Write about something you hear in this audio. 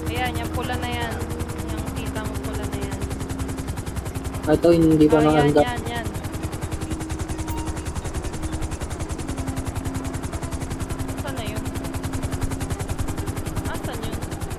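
A helicopter's rotor thumps overhead as it flies.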